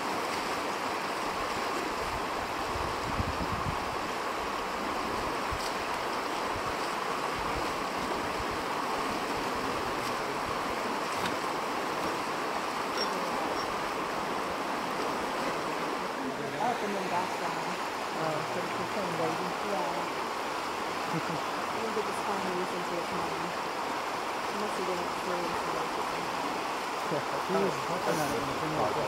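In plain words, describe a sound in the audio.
A bear wades and splashes through shallow water.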